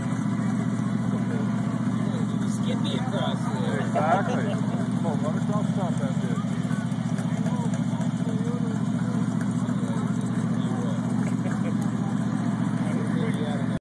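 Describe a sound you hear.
An engine rumbles steadily at idle.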